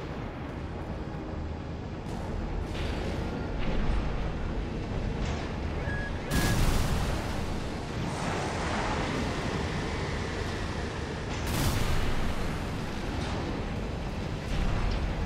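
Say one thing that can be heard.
Guns fire in bursts of sharp blasts.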